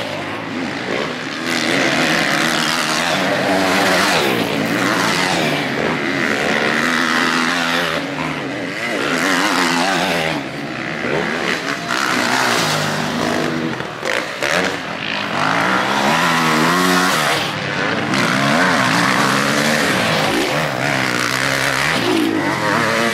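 Dirt bike engines rev loudly and roar past, rising and falling in pitch.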